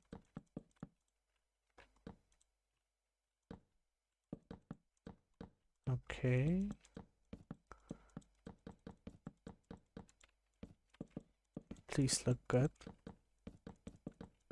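Stone blocks are set down with quick, dry knocking taps.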